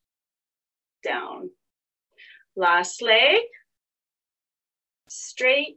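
A woman speaks calmly and close to the microphone.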